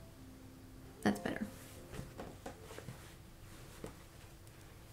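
A sewing machine stitches with soft knocks and rustles.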